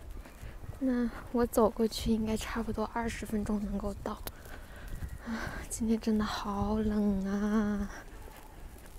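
A young woman speaks close by, softly and casually.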